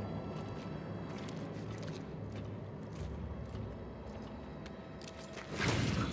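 Footsteps crunch on rocky ground.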